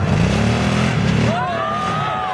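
A small off-road vehicle's engine revs nearby.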